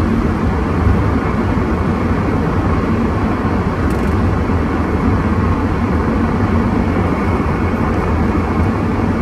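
Tyres roll along a road with a steady low rumble.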